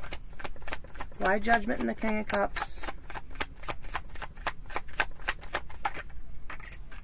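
Playing cards riffle and flick quickly as they are shuffled.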